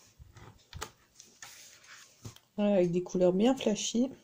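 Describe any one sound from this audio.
A sheet of paper rustles as a page is turned.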